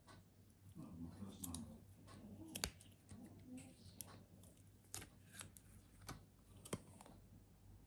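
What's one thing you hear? A silicone mold is peeled off a wax candle with soft rubbery rustles and squeaks.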